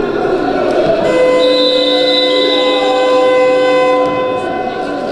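A loud buzzer sounds steadily in an echoing hall.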